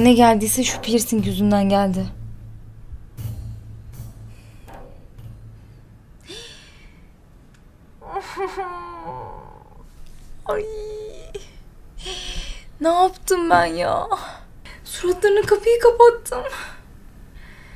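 A young woman talks close by, with feeling.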